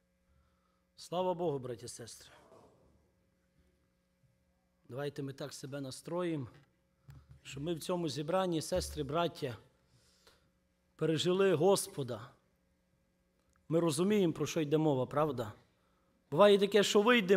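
A young man speaks calmly into a microphone, heard over loudspeakers in a large echoing hall.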